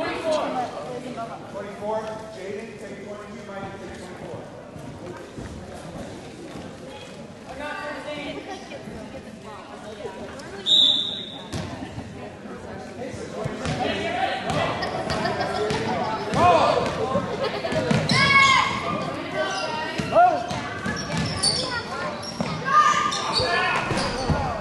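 Spectators chatter in a large echoing gym.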